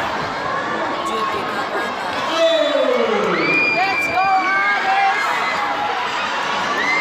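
A large crowd cheers and shouts in a big echoing gym.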